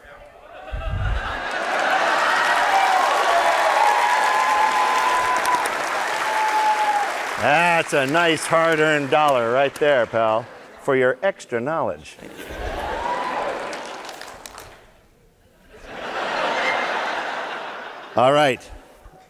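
An audience cheers and applauds loudly.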